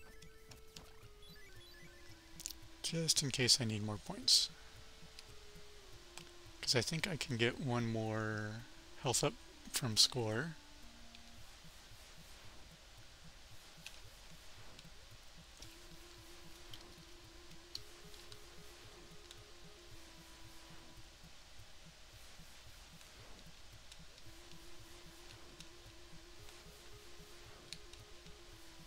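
Soft chiptune game music plays with simple beeping notes.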